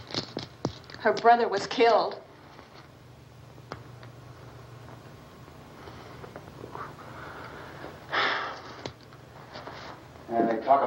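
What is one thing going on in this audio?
A woman speaks tensely in reply.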